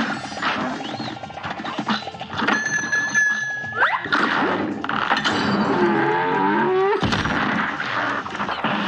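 Cartoon gunshots fire in rapid bursts.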